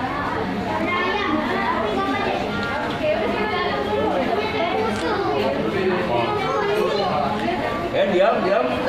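Many voices of men and women chatter all around in a busy, echoing room.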